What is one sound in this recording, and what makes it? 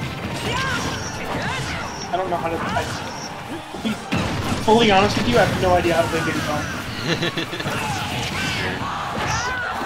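Game fighters clash with quick punches, whooshes and blasts.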